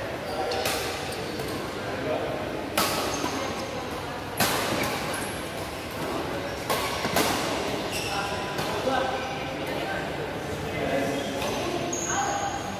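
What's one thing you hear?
Rackets smack shuttlecocks in sharp pops that echo in a large hall.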